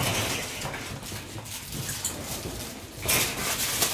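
Shiba Inu puppies growl while tugging at a toy.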